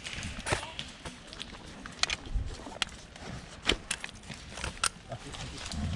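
A magazine clicks and rattles as it is handled and loaded into a rifle.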